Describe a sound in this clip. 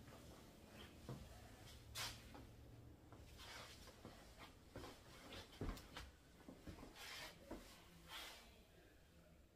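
A man's clothing rustles and his footsteps thud close by.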